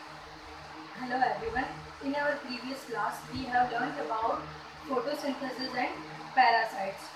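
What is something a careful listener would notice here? A young woman speaks calmly and clearly into a clip-on microphone, close by.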